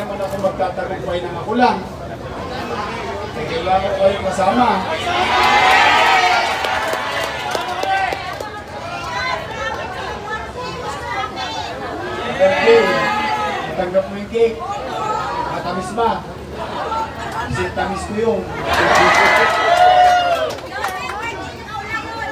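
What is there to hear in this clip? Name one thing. A man speaks loudly to a crowd outdoors.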